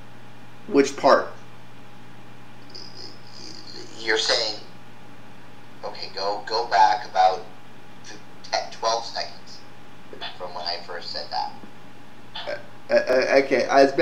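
A man speaks casually into a nearby microphone, in short bursts.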